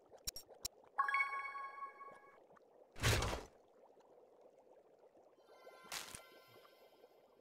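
A bright game chime rings several times.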